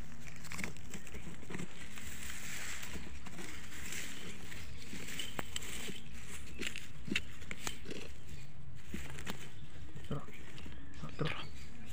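A small metal tool scrapes and digs into dry soil.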